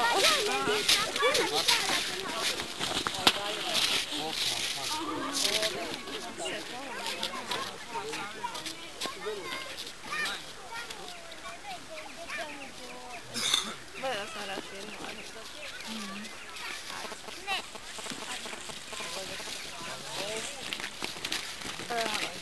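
Several people talk and call out nearby outdoors.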